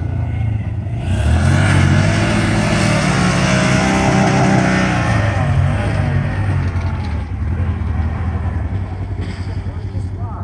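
A dirt bike engine idles nearby.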